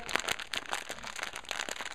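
Small plastic pieces click together in fingers.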